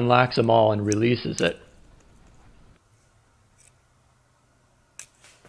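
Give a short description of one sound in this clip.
Small metal fittings click together in hands.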